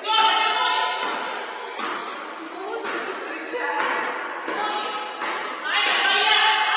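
A basketball is dribbled on a wooden floor.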